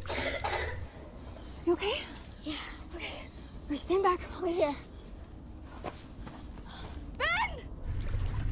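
A young woman gasps and whimpers in fear close by.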